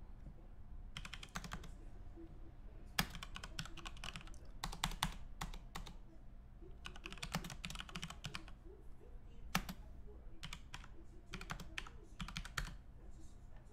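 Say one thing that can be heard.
Keys and a mouse click in quick bursts.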